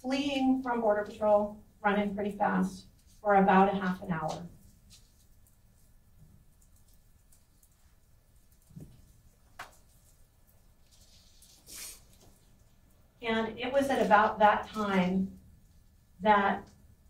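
A woman speaks into a microphone in a measured, questioning tone, with pauses.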